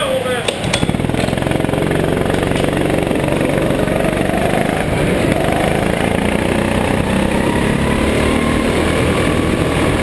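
A go-kart engine revs and buzzes loudly in a large echoing hall.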